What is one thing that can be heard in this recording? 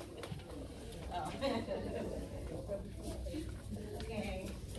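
People chatter in a crowded room.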